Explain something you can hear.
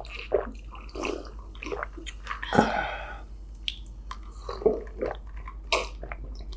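A man gulps a drink loudly, close to a microphone.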